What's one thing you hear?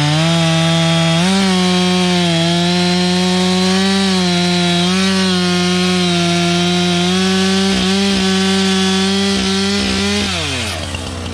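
A chainsaw roars loudly while cutting through a log, close by.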